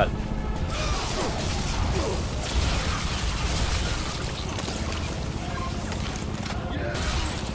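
Gunfire rattles and booms in quick bursts.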